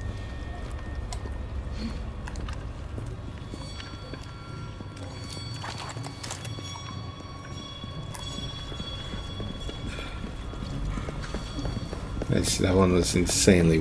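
Footsteps crunch on a rocky floor.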